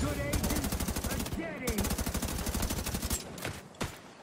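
Rapid automatic gunfire rattles close by.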